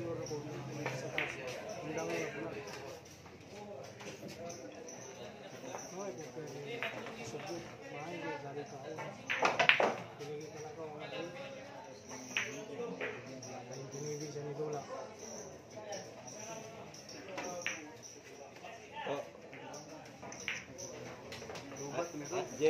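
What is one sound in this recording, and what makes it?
Men chat in low voices nearby.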